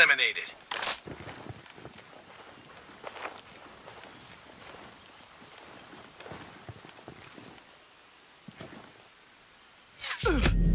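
Footsteps crunch over leaves and dry ground.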